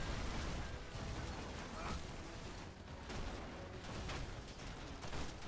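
Heavy footsteps clank on metal rungs.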